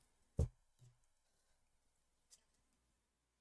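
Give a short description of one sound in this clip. Cards tap softly as they are set down.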